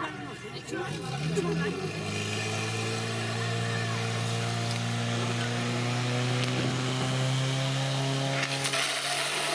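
A pump engine revs up and then roars steadily.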